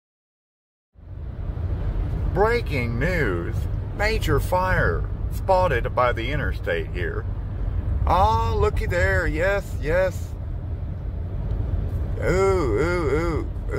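A car rumbles steadily along a road.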